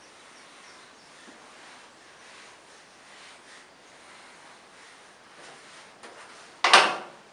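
An eraser rubs and squeaks across a whiteboard.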